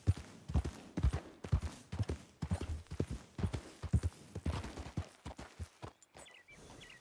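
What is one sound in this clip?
A horse's hooves clop steadily on a dirt path.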